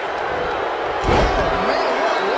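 A body thuds heavily onto a wrestling ring mat.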